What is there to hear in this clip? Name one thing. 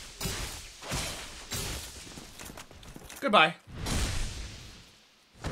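A sword strikes with heavy metallic blows.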